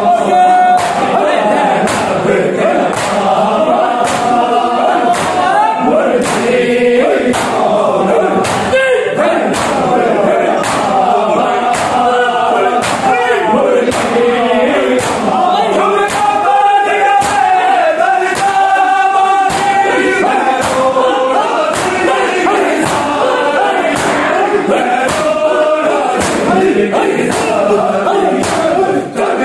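A crowd of men chants loudly together in a room.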